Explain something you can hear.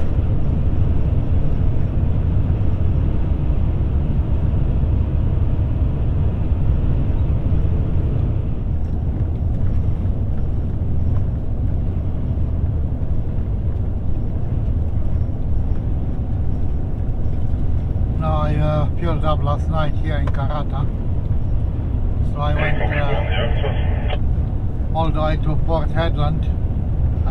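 A car's tyres rumble steadily on a paved road at speed.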